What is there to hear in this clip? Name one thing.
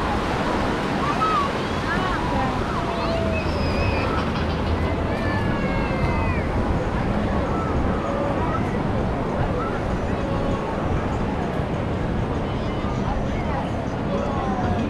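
A crowd of people chatter and call out all around, outdoors.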